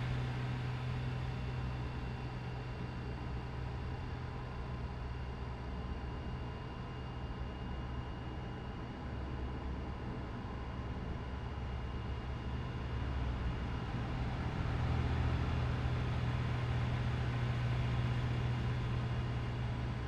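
A truck engine hums low and steady while driving.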